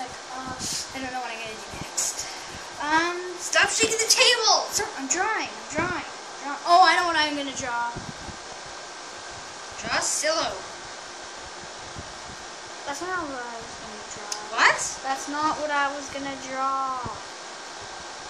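Young children talk and chatter nearby.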